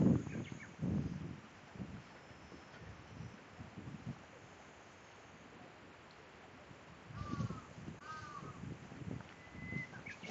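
Wind gusts outdoors, rustling through grass and trees.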